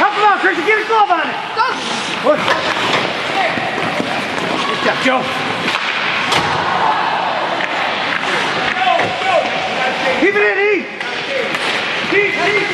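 Young men shout and cheer nearby in a large echoing rink.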